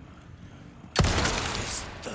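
A pistol fires with a sharp bang that echoes.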